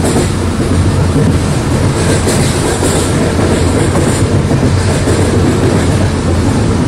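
An electric train hums and rumbles steadily along the track.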